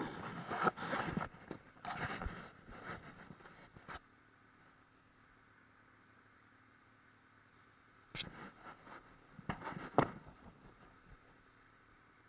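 A towed sled bumps and rattles over snow in short bursts.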